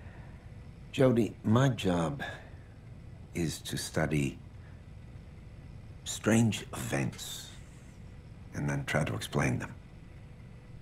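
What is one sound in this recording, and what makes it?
A man speaks calmly and slowly, close by.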